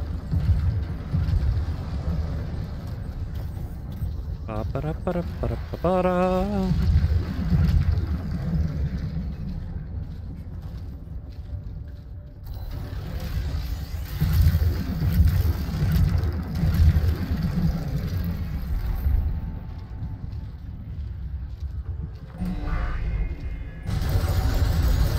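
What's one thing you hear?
Heavy footsteps crunch over gravel and rock.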